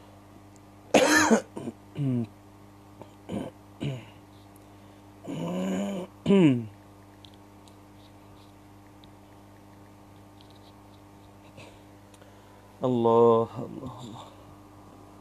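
A man speaks calmly into a close microphone in short bursts.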